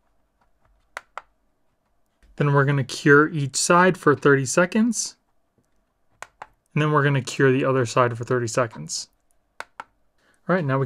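A plastic case clicks and knocks softly as it is pressed into a holder.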